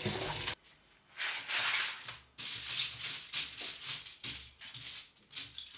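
Small pieces clatter onto a cloth as hands sort them.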